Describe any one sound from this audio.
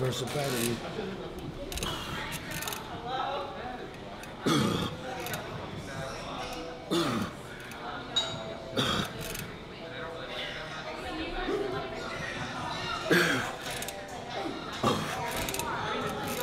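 A man grunts and exhales hard with effort.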